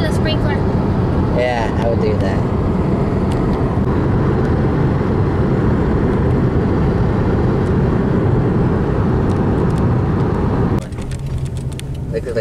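A car drives along with a loud, steady road rumble heard from inside, then grows quieter.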